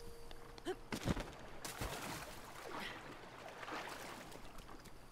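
Water splashes as someone wades and swims.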